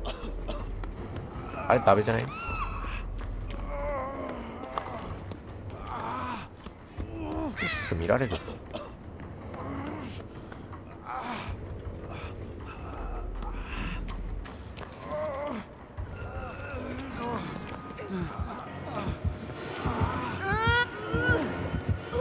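Heavy footsteps thud across a hard floor.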